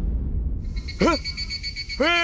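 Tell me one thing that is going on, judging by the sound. A young man exclaims in surprise.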